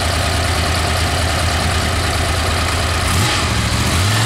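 A motorcycle engine idles with a steady throbbing rumble.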